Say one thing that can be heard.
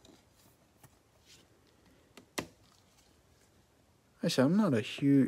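A plastic card sleeve crinkles and clicks softly in gloved hands.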